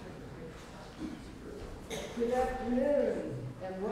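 Footsteps cross a wooden stage in a large hall.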